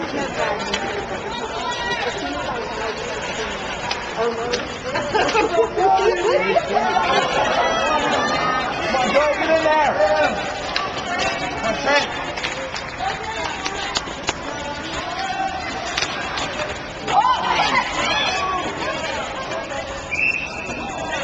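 A crowd of spectators chatters in a large echoing rink.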